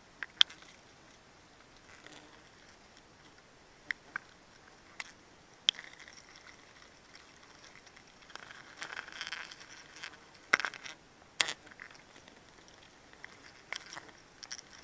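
A blade slices through honeycomb with soft knocks and scrapes.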